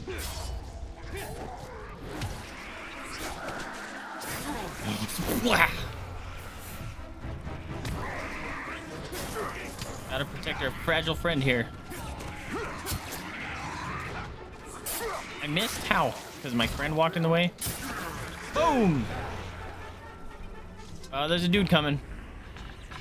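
Creatures shriek and growl in a fight.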